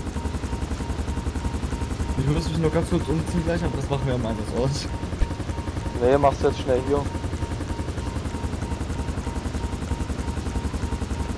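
A helicopter engine whines steadily as its rotor beats with a fast, low thumping.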